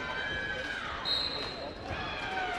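A referee blows a short, shrill whistle.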